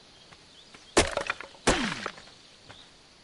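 A hatchet chops into a tree trunk with heavy thuds.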